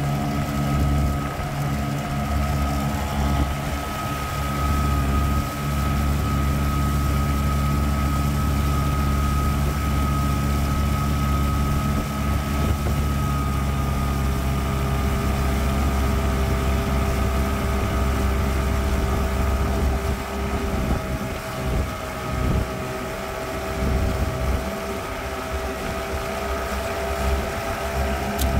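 Water rushes and splashes along a moving boat's hull.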